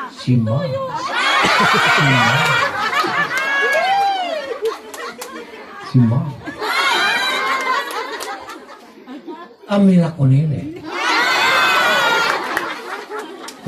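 A large crowd nearby cheers and shouts loudly in bursts.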